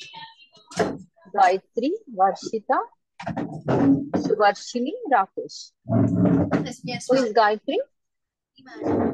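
Young girls talk and answer over an online call.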